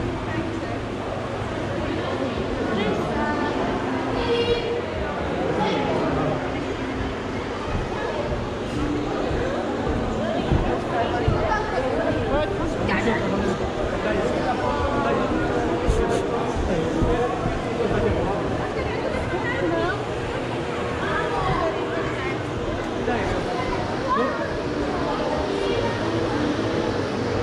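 A crowd of adults and children chatter all around in a large echoing hall.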